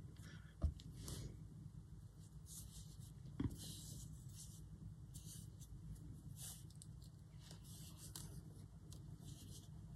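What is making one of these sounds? Ribbon and paper rustle softly as hands handle them.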